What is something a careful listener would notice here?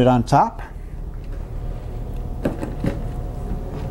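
A wooden case thumps down onto a surface.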